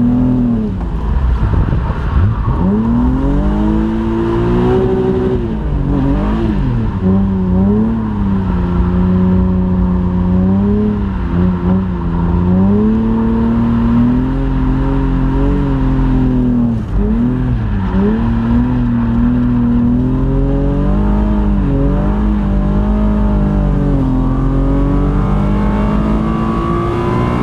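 A car engine roars loudly inside the cabin, its pitch rising and falling as it revs and shifts gears.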